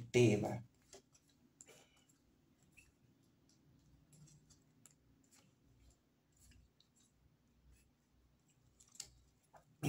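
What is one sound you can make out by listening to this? Cards slide and tap softly as they are laid down one by one.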